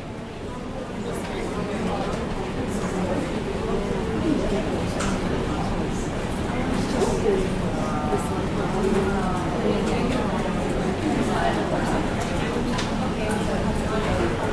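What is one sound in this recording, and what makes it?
A young man speaks calmly into a microphone in a room with a slight echo.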